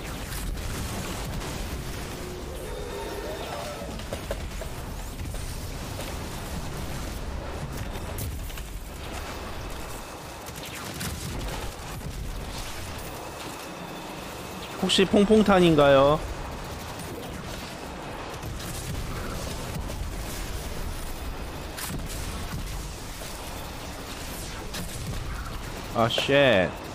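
Rapid gunfire and energy blasts crackle.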